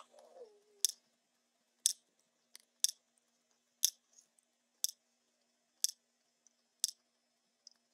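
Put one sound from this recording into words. A short, sharp tick sounds once every second as a countdown.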